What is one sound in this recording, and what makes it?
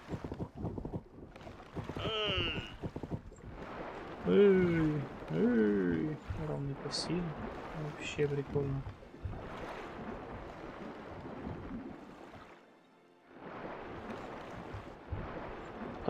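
Waves lap gently against a shore.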